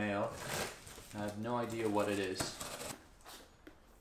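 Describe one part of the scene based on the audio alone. Cardboard flaps rustle as a box is opened.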